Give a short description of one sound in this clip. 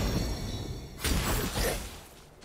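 A magical energy blast bursts with a bright whoosh.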